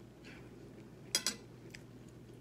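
A fork scrapes on a plate.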